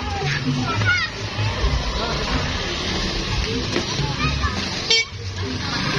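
A crowd of children chatter and shout outdoors.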